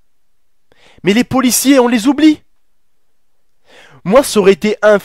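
A young man speaks with animation into a headset microphone, close up.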